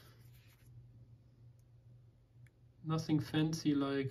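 A metal pick scrapes and clicks inside a small lock.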